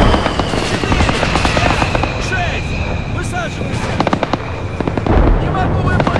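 Rockets whoosh away one after another.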